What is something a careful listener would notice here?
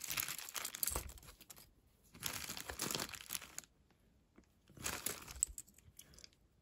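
Metal jewellery clinks and rattles as a hand rummages through a pile.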